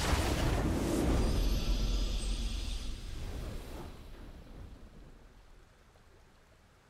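A triumphant game fanfare swells and fades out.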